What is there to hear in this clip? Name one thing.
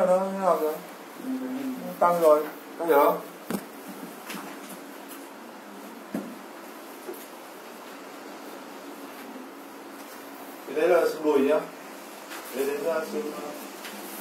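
A man speaks in short bursts.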